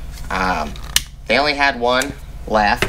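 A lighter clicks as it sparks.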